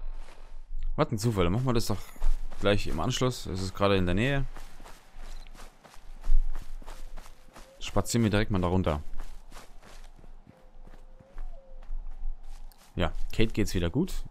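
Footsteps rustle through dry undergrowth.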